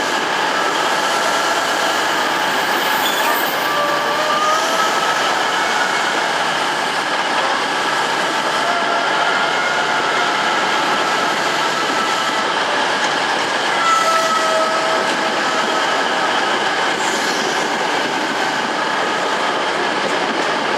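A train rushes steadily past along a platform, its wheels rumbling and whooshing loudly.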